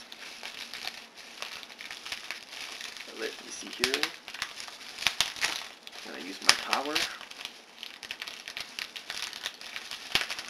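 Plastic wrapping crinkles and rustles in a man's hands.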